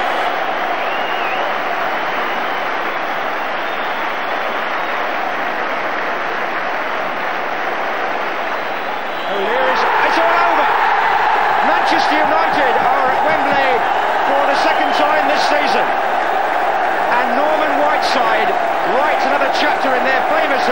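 A large crowd sings and chants together in an open stadium.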